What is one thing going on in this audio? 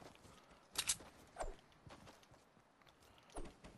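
Footsteps run quickly across grass.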